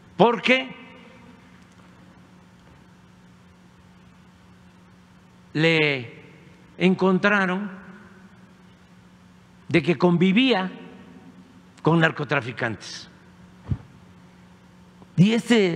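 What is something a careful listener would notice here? An elderly man speaks slowly into a microphone, in short bursts with pauses.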